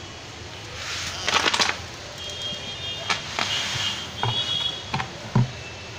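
Grain pours out of a bucket with a rushing hiss.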